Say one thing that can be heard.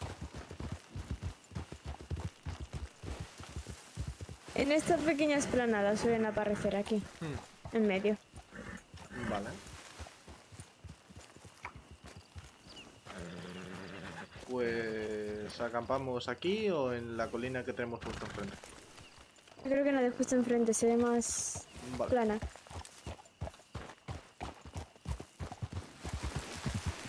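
Horse hooves thud steadily on dry ground.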